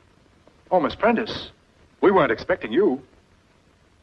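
A middle-aged man speaks firmly and close by.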